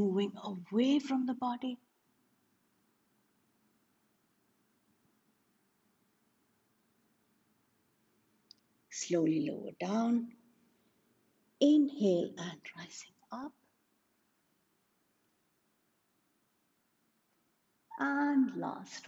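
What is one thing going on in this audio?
A woman speaks calmly and clearly, in short phrases with pauses.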